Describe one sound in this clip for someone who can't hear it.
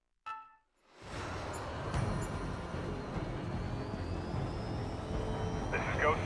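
A jet engine roars steadily in flight.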